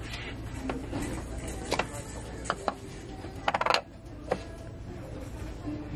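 A hand lifts a lid off a glass candle jar with a soft clink.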